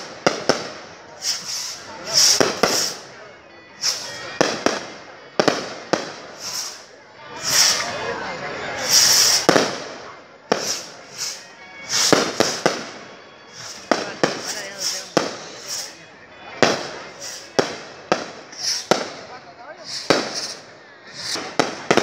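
Rockets whistle and hiss as they shoot up.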